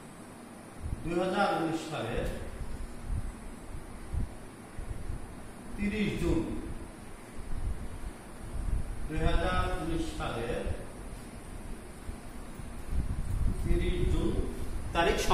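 A man speaks in short phrases, explaining slowly.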